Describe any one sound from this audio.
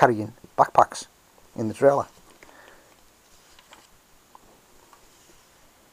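A paper page of a booklet turns.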